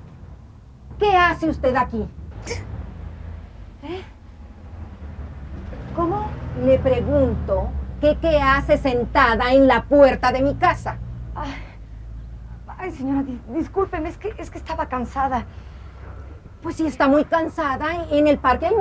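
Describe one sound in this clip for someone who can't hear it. An older woman speaks loudly and angrily, close by.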